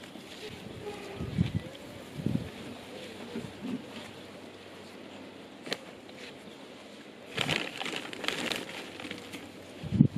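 Hands rustle through soil and leaves close by.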